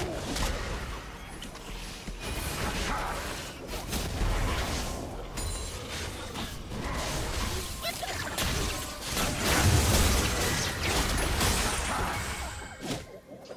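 Game spell effects whoosh, crackle and burst in a fight.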